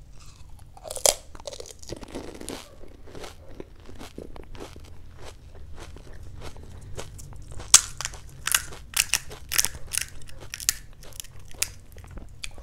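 A young woman chews crunchy food loudly and close up.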